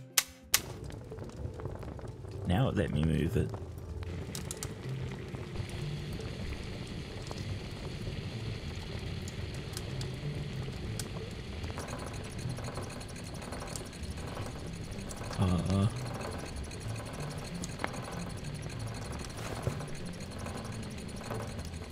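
A fire crackles softly in a stove.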